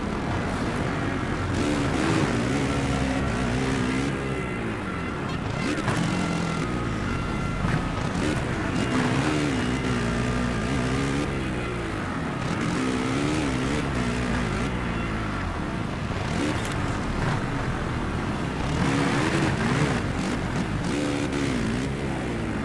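A motorbike engine revs and whines, rising and falling in pitch as it shifts gears.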